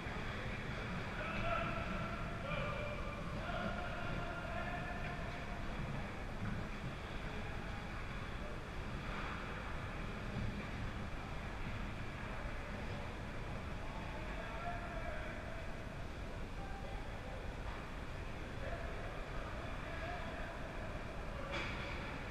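Young players call out to each other in an echoing rink.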